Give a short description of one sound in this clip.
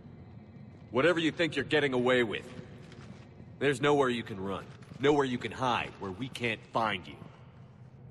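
A man speaks firmly and defiantly.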